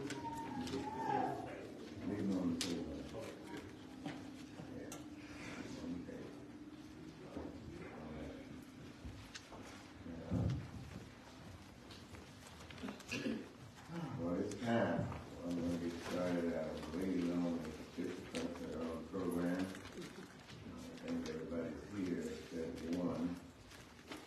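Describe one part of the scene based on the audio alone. A group of people sings together in a room that echoes.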